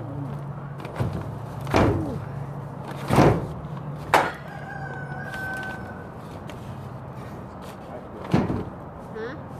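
Something thumps against plastic sheeting a few times.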